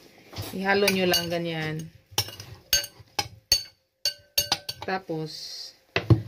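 A spoon clinks against a glass bowl.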